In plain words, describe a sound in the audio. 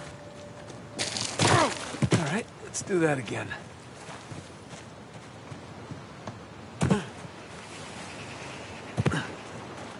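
Loose gravel scrapes as a man slides down a slope.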